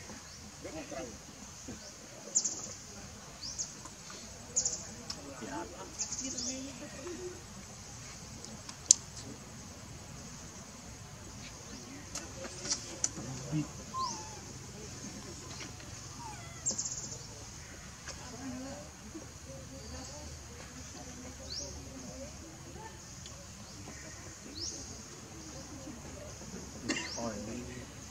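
A baby monkey squeaks softly nearby.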